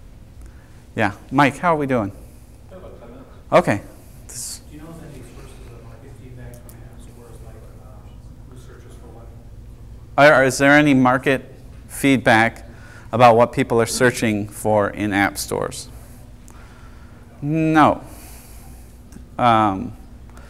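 A man speaks to a small audience in a quiet room, pausing often.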